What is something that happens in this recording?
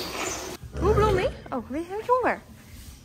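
A horse nickers nearby.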